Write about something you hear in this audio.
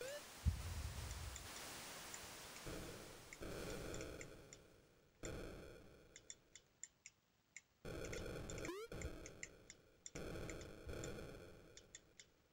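A Commodore 64 racing game plays buzzing, noisy chip-sound engine effects in bursts.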